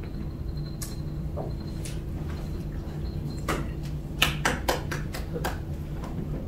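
Small objects click and knock on a bench.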